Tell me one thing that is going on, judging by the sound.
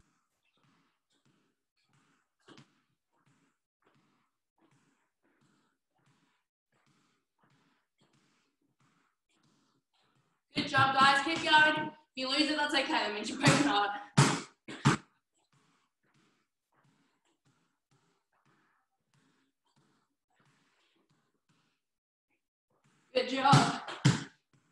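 A basketball bounces on a hard floor in a steady rhythm.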